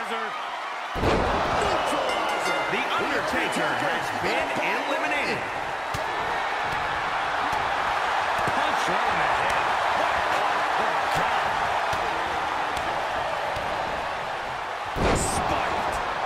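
A body slams heavily onto a wrestling mat with a loud thud.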